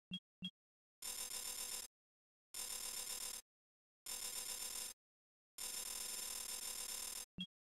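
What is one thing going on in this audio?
Bursts of bright electronic whooshing play as menu bars slide in.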